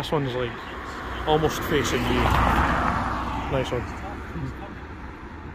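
A car drives past and fades away.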